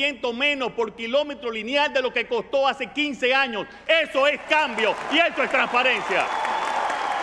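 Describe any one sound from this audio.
A middle-aged man speaks forcefully into a microphone, his voice ringing through a large hall.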